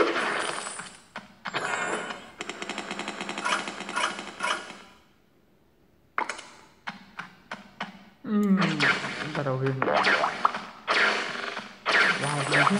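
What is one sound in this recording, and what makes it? Electronic game sound effects chime and burst in quick succession.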